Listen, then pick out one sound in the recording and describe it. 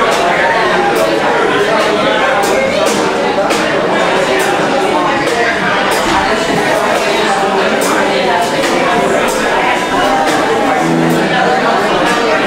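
Electric guitars play chords through amplifiers.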